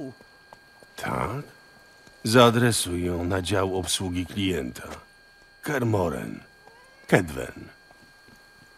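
Another man answers in a low, calm voice.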